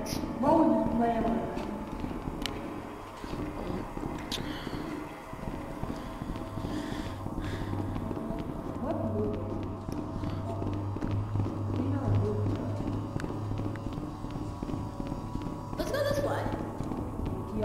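Footsteps patter along a hard floor.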